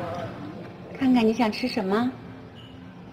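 A young girl calls out in a high voice.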